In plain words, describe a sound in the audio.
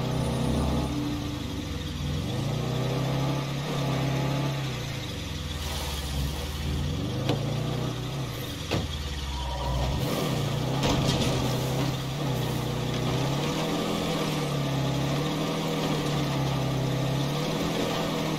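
A truck engine hums and revs up and down as it drives.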